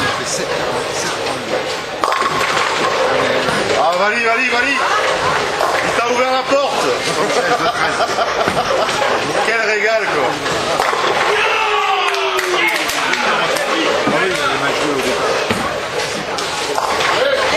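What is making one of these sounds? A bowling ball rolls down a wooden lane.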